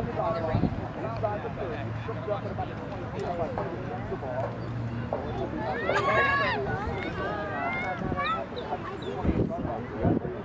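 Young girls talk and call out to each other outdoors.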